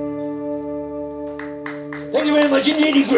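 A band holds a loud final chord on electric guitars.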